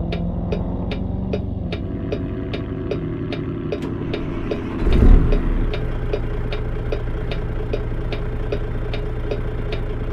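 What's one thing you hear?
A turn signal clicks at a quick, even pace.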